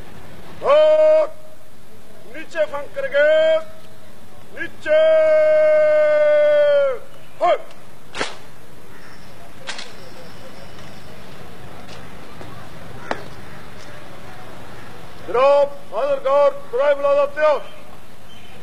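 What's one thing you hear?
A man shouts long, drawn-out parade commands outdoors.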